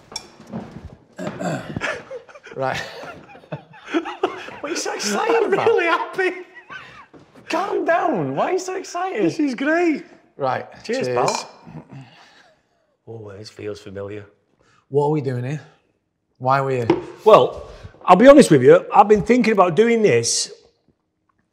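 A second man answers, laughing and talking casually.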